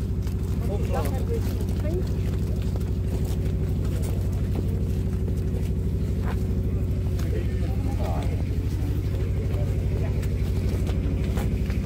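Small hooves clop on pavement.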